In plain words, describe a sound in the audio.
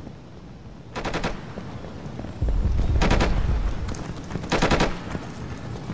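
A rifle fires short rapid bursts.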